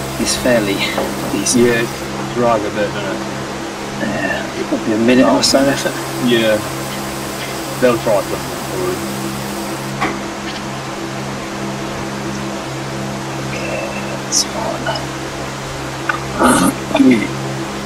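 An indoor bike trainer hums steadily.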